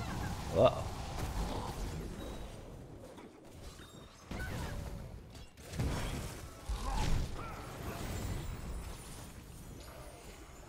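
Magic blasts and clashing battle effects crackle and whoosh.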